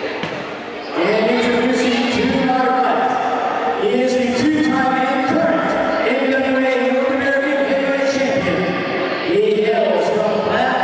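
A man announces loudly through a microphone and loudspeakers in an echoing hall.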